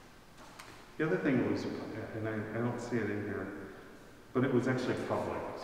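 A man reads aloud calmly in an echoing hall.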